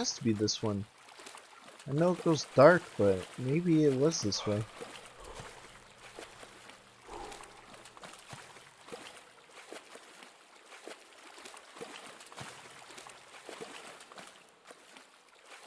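Water sloshes and splashes softly with each wading step.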